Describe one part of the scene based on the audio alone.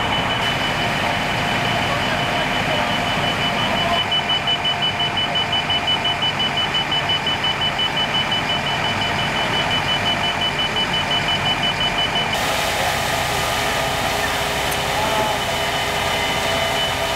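A fire engine's motor rumbles steadily nearby.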